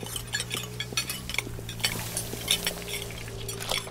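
Plates clatter into a sink.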